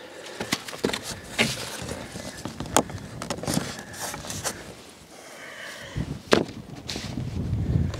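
A man taps and rustles paper against a board.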